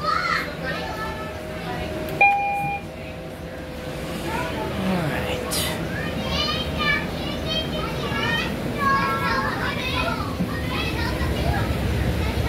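A bus engine hums steadily.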